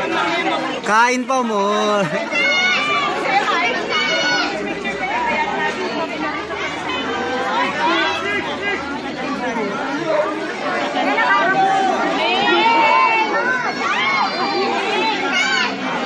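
A young woman speaks animatedly into a microphone, heard through a loudspeaker.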